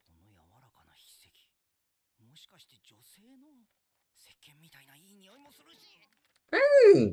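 A man speaks quietly in short phrases.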